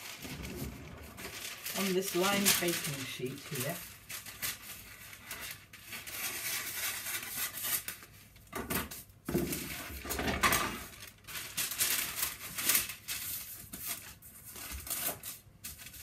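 A rolling pin thumps and rolls over dough on a counter.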